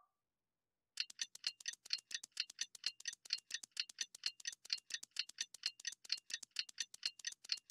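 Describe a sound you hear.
A clock mechanism ticks rapidly and steadily as its hands wind forward.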